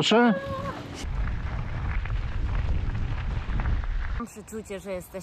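Bicycle tyres roll over a dirt path.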